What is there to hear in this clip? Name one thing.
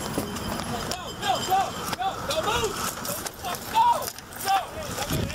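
A man shouts commands loudly close by.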